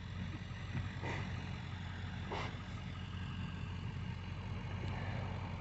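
A pickup truck with a snowplow rumbles at low speed.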